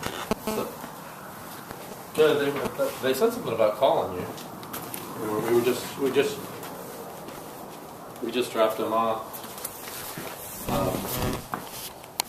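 Satin cloth rustles and swishes as it is pulled and gathered.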